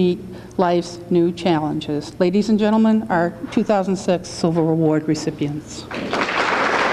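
A middle-aged woman speaks into a microphone over a loudspeaker.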